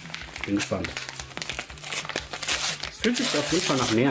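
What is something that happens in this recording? A paper envelope crinkles and tears open.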